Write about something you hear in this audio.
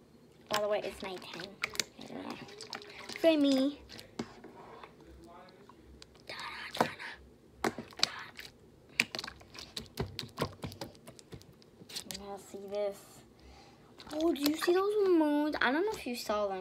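Slime squishes and pops under fingers.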